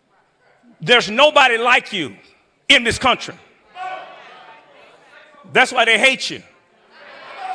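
A man preaches with animation into a microphone in a large echoing hall.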